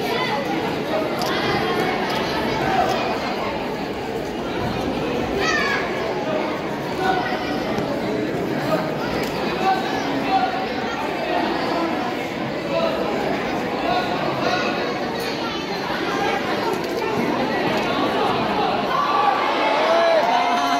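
A crowd of children chatter and shout in a large echoing hall.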